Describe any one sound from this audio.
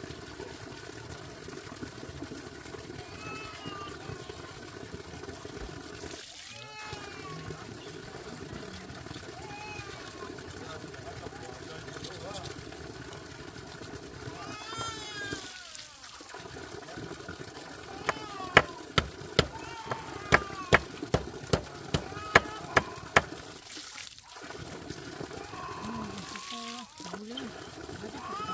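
Water pours from a pipe and splashes steadily into a basin outdoors.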